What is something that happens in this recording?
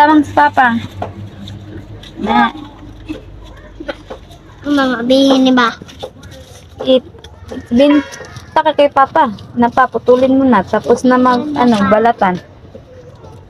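Young children talk and call out close by.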